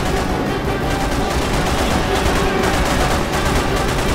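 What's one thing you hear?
A pistol fires shots.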